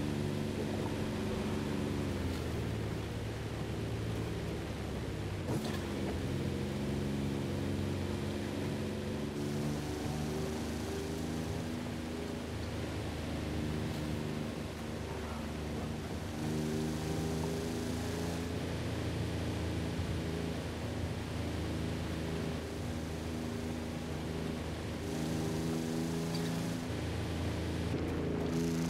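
Tyres rumble and crunch over a dirt road.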